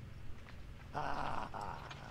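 A game character shouts in alarm.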